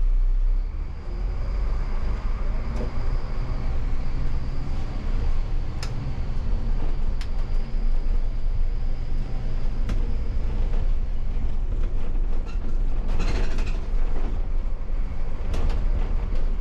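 The bus rattles and clatters as it rolls over the street.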